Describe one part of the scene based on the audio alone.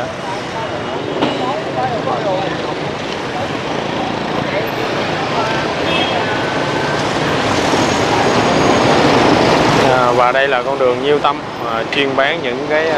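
Motorbike engines hum and buzz past in busy street traffic.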